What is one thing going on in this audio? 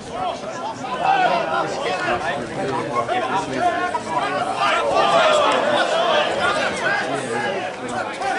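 A crowd of spectators cheers and shouts in the distance.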